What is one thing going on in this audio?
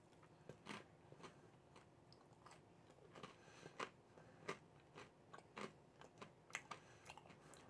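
A man chews and crunches food close by.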